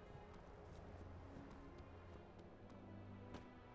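Footsteps thud quickly on dirt.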